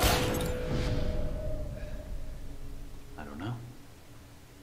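A man groans in pain close by.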